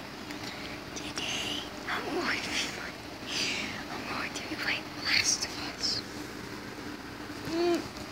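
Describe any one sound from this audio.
A young woman speaks excitedly close by.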